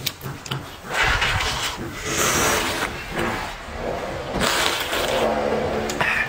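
A young man slurps broth loudly from a bowl, close by.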